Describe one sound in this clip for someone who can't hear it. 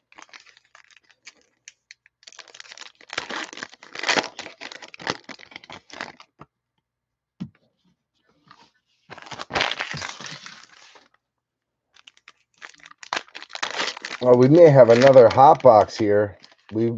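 A foil wrapper crinkles and tears in hands close by.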